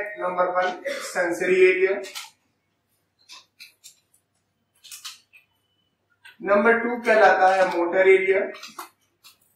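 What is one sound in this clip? A man lectures calmly, close to a microphone.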